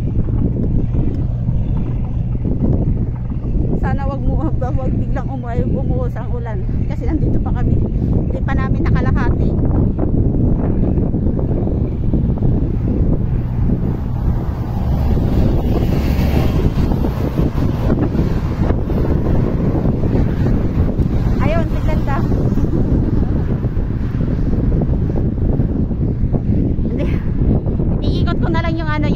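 Wind blusters steadily against the microphone outdoors.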